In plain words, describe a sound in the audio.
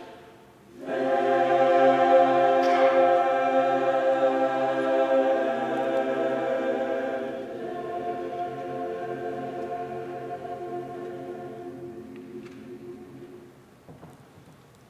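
A large choir sings together in a hall with echo, then holds a final chord that fades away.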